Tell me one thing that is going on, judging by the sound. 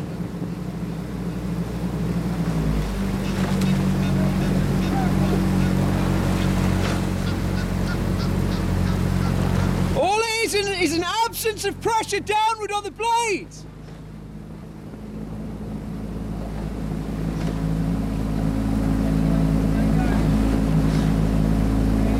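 Oars splash and knock rhythmically in the water.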